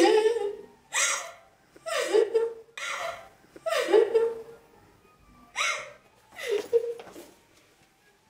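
A woman cries out in short, loud bursts close by.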